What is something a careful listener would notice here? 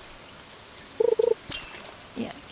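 A game chimes sharply as a fish bites.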